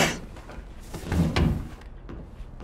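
A body thuds onto a carpeted floor.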